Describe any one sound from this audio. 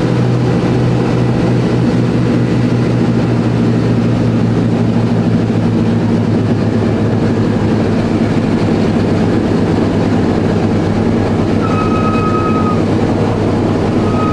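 Piston aircraft engines drone loudly and steadily from close by.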